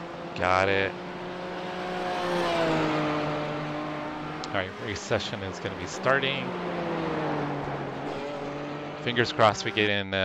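A racing car engine roars and changes pitch as the car speeds along and shifts gears.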